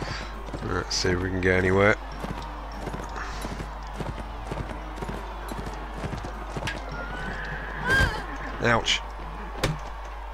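Horse hooves thud quickly over soft ground.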